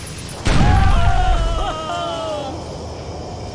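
A tank cannon fires with a loud, deep boom that rolls away.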